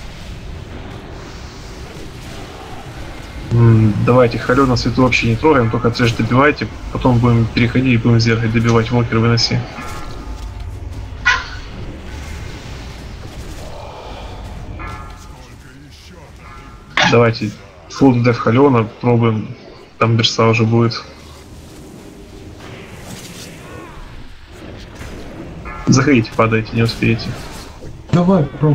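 Fiery spells crackle and burst.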